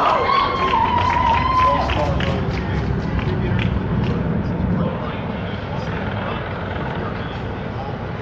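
A crowd of people chatters in an echoing hall.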